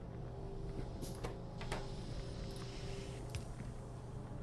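Small clicks and ticks sound now and then.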